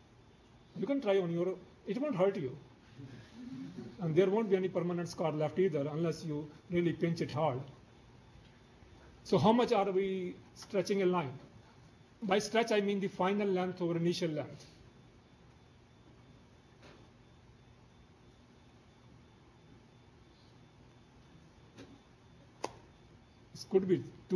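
An elderly man lectures calmly through a microphone.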